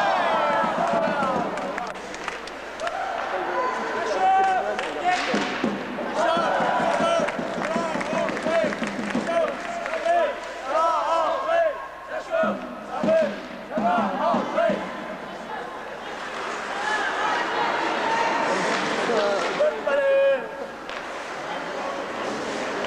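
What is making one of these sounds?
A crowd of spectators shouts and cheers in a large echoing rink.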